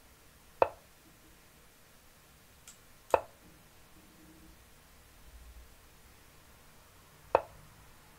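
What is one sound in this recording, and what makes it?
An online chess board plays a short click as a piece is moved.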